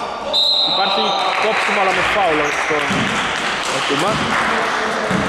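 Men shout and call to each other in a large echoing hall.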